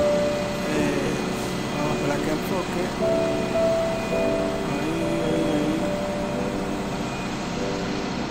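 A motor hums steadily close by.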